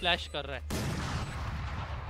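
A rifle fires a quick burst of gunshots.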